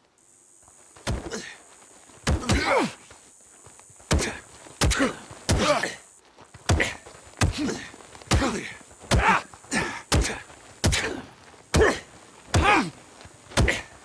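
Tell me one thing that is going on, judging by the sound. Fists thump in repeated punches during a brawl.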